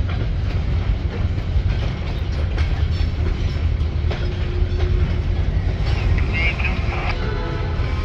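Freight car wheels clatter over rail joints.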